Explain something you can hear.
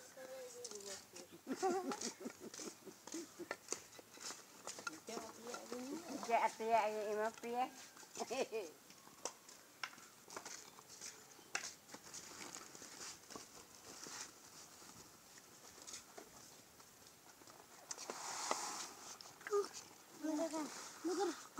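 Young children talk and chatter close by, outdoors.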